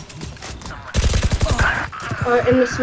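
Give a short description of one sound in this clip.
Rapid gunshots crack from a game.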